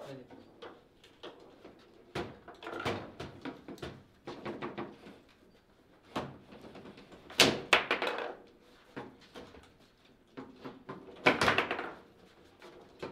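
A plastic foosball ball cracks against players and the table walls.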